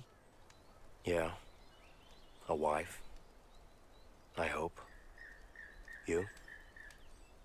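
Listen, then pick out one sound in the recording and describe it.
A second, deeper-voiced man answers calmly, close by.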